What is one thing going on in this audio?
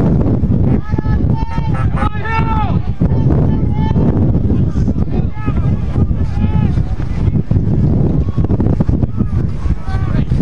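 Men on the sideline shout and call out loudly.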